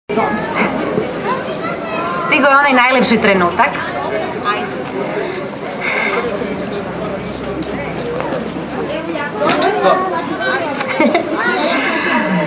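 A woman speaks into a microphone over loudspeakers outdoors.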